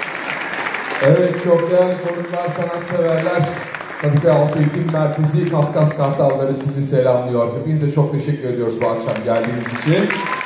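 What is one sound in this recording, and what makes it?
A man speaks to an audience.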